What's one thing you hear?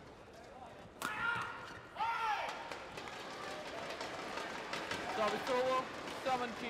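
A large crowd cheers and applauds loudly in a big echoing hall.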